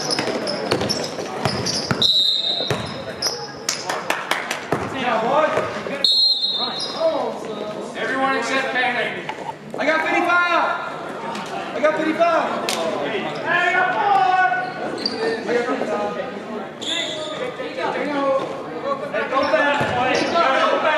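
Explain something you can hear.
Spectators and players talk and call out in an echoing gym.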